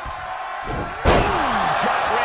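A body slams hard onto the wrestling mat.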